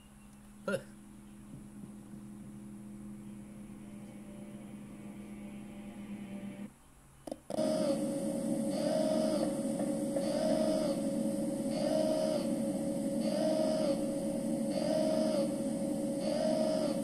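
A game's droning music with a repeating pulsing tone plays from a phone speaker.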